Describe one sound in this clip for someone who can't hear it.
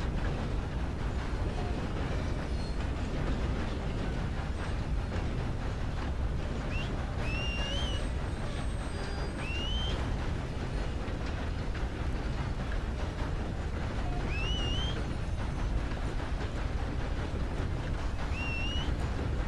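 A steam locomotive chugs steadily.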